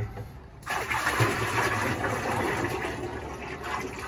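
Used oil pours and splashes into a metal barrel.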